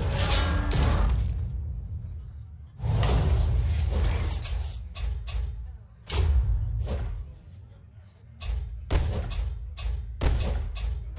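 Game sound effects whoosh and chime in short bursts.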